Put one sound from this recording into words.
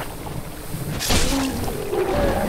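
A sword strikes a creature with a heavy thud.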